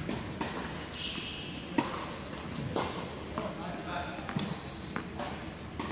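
Tennis balls are struck with a sharp pop in a large echoing hall.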